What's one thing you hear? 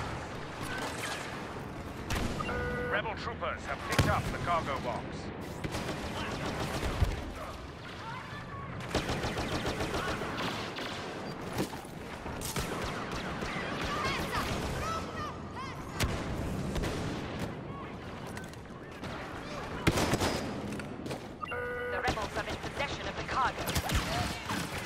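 Blaster shots fire in quick bursts.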